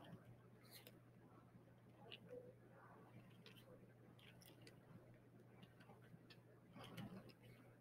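A marker pen squeaks and scratches across paper.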